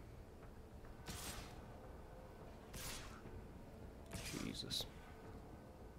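Soft whooshing effects from a card game play now and then.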